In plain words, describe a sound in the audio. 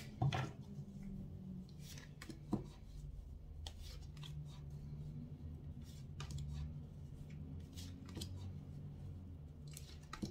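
Playing cards tap and slide softly onto a table.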